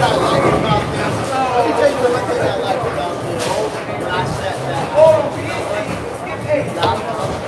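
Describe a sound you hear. Several men talk and chatter nearby in a large echoing hall.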